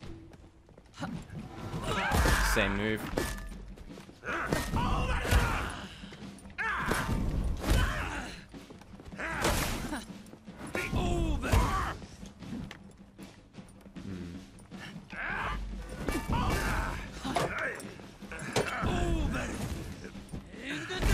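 Steel blades clash and clang in a fight.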